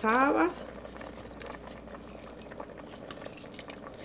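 Beans drop and splash softly into simmering liquid.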